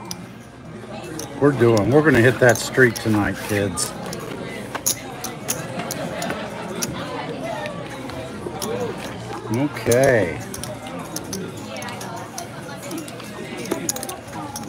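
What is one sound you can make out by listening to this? Casino chips click and clack against one another.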